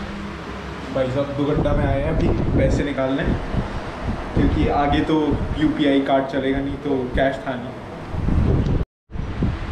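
A young man talks with animation close to the microphone.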